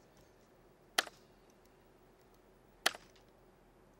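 A computer mouse clicks sharply a couple of times.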